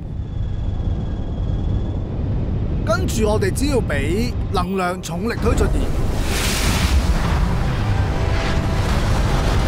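A spaceship engine rumbles deeply and steadily.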